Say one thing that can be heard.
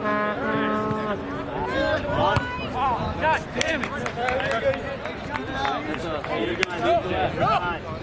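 Spectators talk nearby on the sideline.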